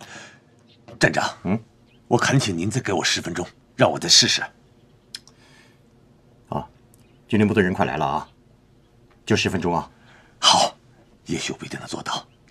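A man speaks earnestly up close.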